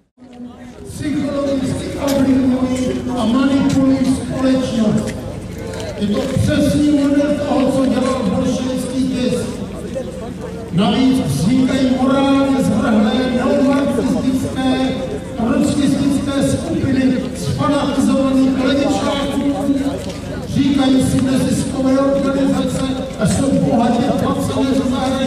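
A middle-aged man speaks forcefully through a loudspeaker outdoors, his voice echoing.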